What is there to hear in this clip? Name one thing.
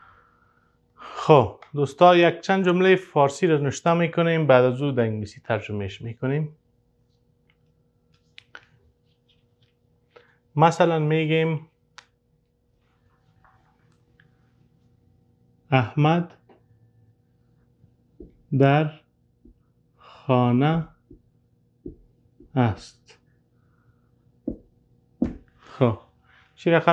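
A man speaks calmly and clearly nearby, pausing between phrases.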